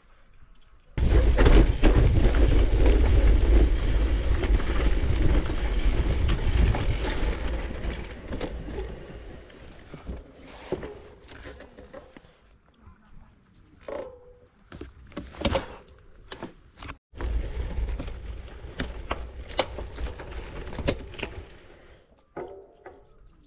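Bicycle tyres crunch over a dirt and gravel path.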